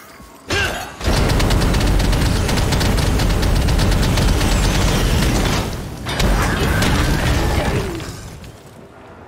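Magic blasts and explosions boom in rapid bursts.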